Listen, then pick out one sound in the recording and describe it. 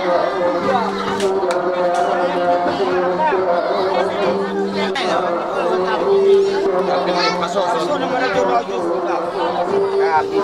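A crowd of people chatter and call out nearby.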